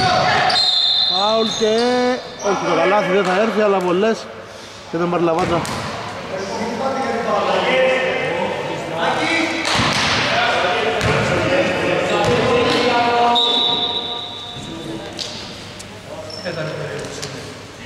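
Sneakers squeak sharply on the floor.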